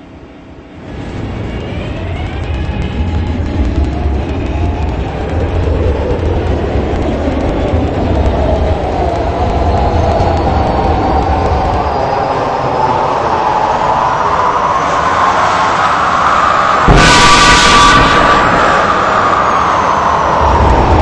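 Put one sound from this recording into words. A train's electric motors whine, rising in pitch as it speeds up.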